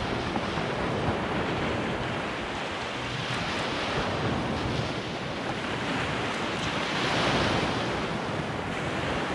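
Waves break and wash onto the shore.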